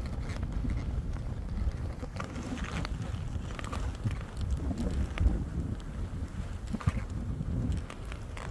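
Skis hiss and swish through soft snow.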